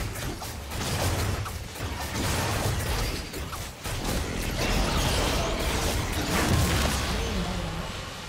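Magic blasts and heavy impacts crash rapidly in a fierce fantasy battle.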